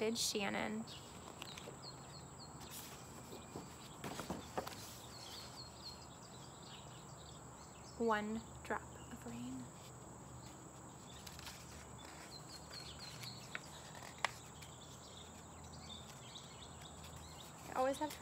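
Book pages rustle and turn.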